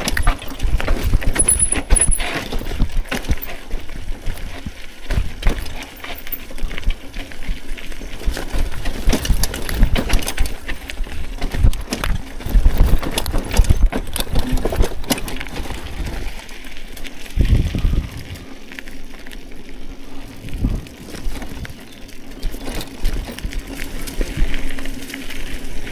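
Bicycle tyres rumble over a bumpy dirt trail.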